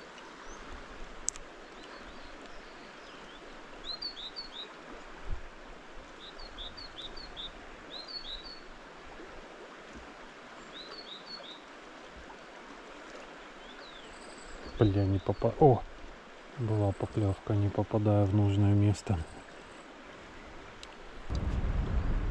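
A shallow stream gently flows and trickles.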